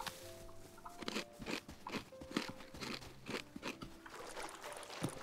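Footsteps crunch on stones.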